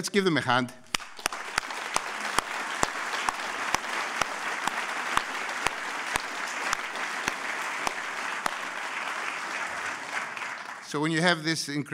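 A middle-aged man claps his hands.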